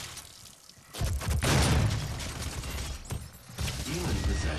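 A shotgun fires with heavy booms.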